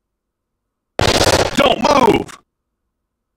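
A gun fires a burst of shots.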